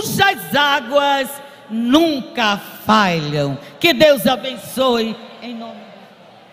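A middle-aged woman preaches loudly and passionately through a microphone in a large echoing hall.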